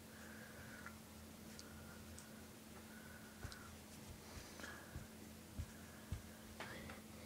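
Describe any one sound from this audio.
A plush toy rustles and bumps softly against a fabric cover.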